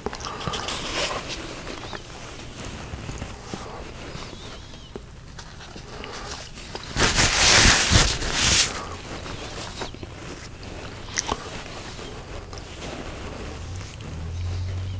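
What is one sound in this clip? A middle-aged man talks calmly and close up into a clip-on microphone.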